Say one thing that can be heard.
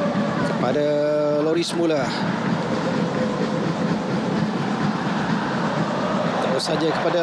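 A large crowd in a stadium chants and cheers steadily.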